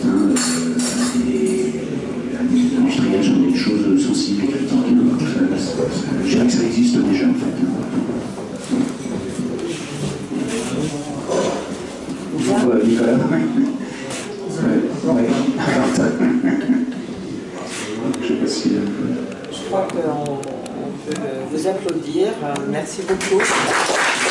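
An elderly man speaks calmly into a microphone through loudspeakers.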